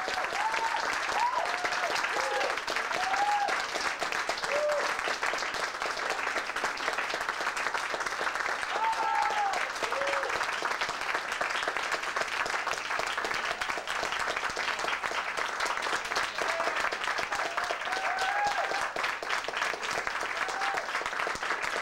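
Audience members whoop and cheer.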